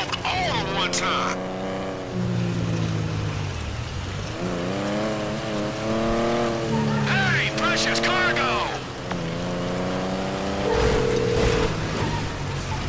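A car engine revs up and down as a car drives along a road.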